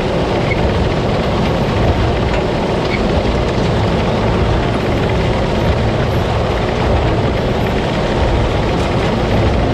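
A harvester's machinery roars steadily up close.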